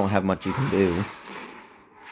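A large creature roars with a deep, growling cry.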